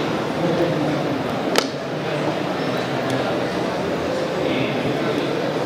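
A man speaks steadily into a microphone over loudspeakers in a large echoing hall.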